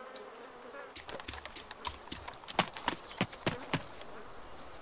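Footsteps crunch quickly on a dirt track.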